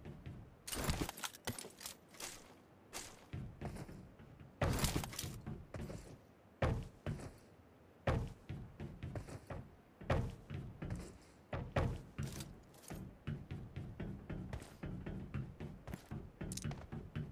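Footsteps thud on hollow metal roofs.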